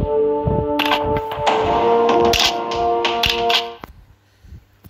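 Bright game menu music plays with chiming notes.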